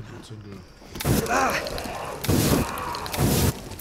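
A flamethrower roars loudly in bursts.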